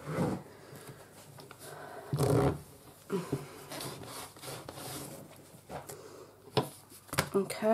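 Paper rustles and crinkles as it is handled.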